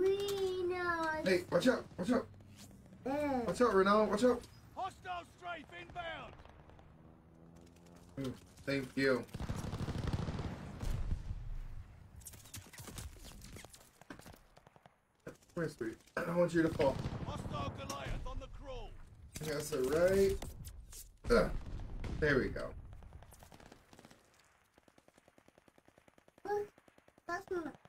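Gunfire crackles from a game.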